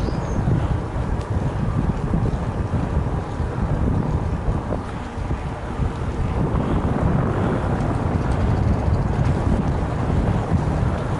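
Wind rumbles loudly past the microphone while moving outdoors.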